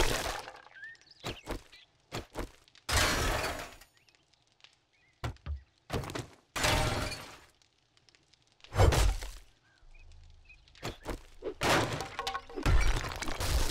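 A wrench bangs and scrapes against metal and wood in hard, repeated blows.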